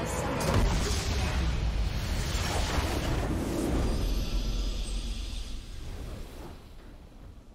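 A deep rumbling whoosh sounds from a game.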